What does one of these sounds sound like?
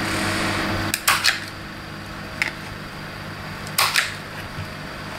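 A plastic lid clacks and rattles.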